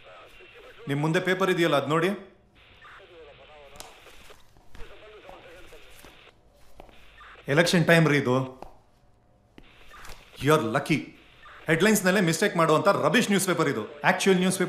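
A man talks firmly in a raised voice.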